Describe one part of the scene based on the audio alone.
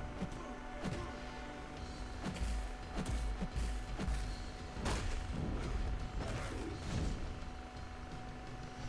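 Punches and blows land with sharp thuds and whooshes in a fight.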